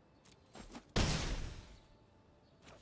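A game creature attack lands with a loud whooshing crash.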